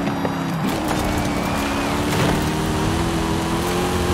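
Tyres rumble and crunch over gravel.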